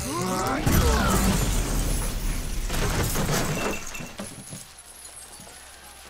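Debris clatters down across the floor.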